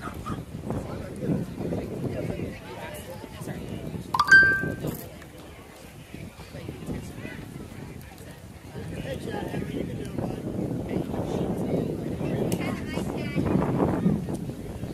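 Spectators nearby talk and call out outdoors.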